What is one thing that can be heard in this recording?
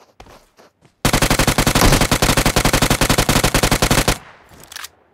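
A rifle fires a long, rapid burst of shots.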